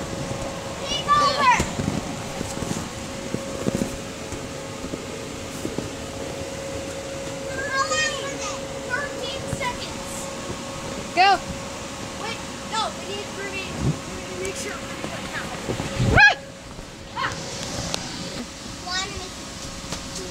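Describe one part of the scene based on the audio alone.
Young children shriek and shout playfully close by.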